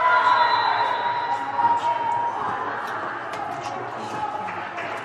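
Young women cheer and shout together in an echoing hall.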